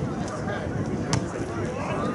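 A boot kicks a ball with a thud.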